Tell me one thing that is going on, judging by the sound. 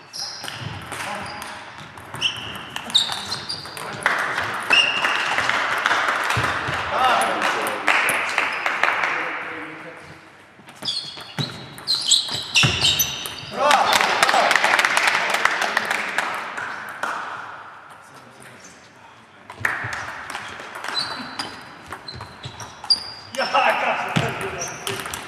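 A table tennis ball clicks back and forth between paddles and the table in an echoing hall.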